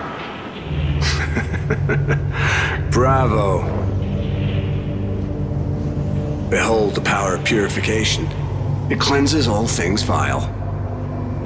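A man speaks with dramatic force, close up.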